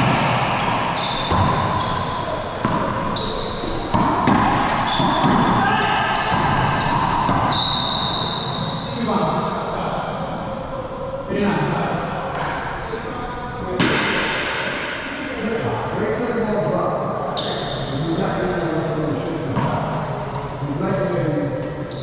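Men talk casually to each other, their voices echoing.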